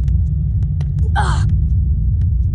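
A climber scrambles up a stone wall.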